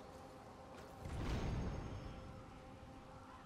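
A deep magical blast whooshes and roars.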